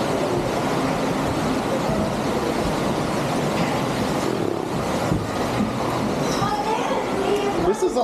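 Water rushes and splashes down a slide.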